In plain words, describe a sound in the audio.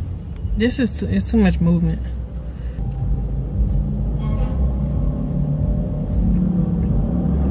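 A car's engine rumbles low and steady.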